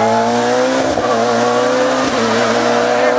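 A racing saloon car's engine drops in pitch as it shifts gears.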